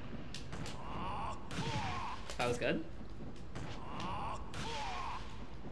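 Punches and kicks land with sharp smacks.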